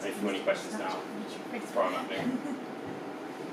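A young man speaks in a lightly echoing room.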